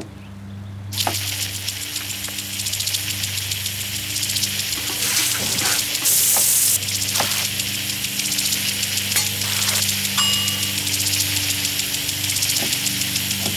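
Water hisses steadily from a sprinkler.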